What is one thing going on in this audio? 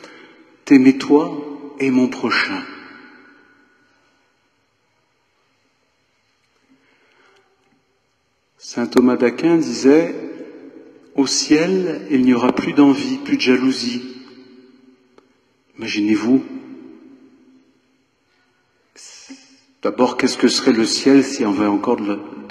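An elderly man speaks calmly through a microphone in a large echoing hall, pausing between phrases.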